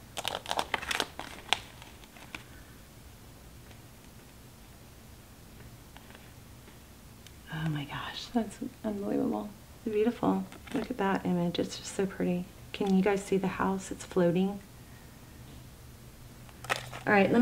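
Cards rustle and flick softly as they are handled.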